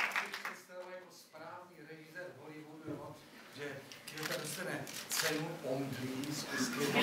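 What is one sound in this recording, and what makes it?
An elderly man speaks into a microphone to an audience.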